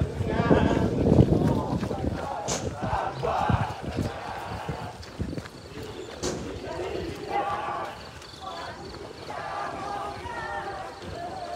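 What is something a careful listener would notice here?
Several people talk as they jog, close by and slightly out of breath.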